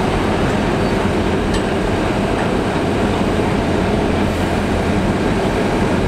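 A heavy truck engine rumbles steadily as the truck creeps slowly.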